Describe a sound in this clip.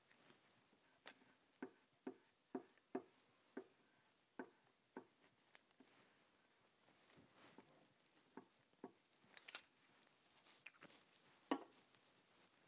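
Small objects tap softly on a table.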